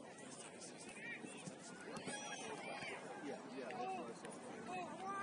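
Young players shout and call out far off across an open field.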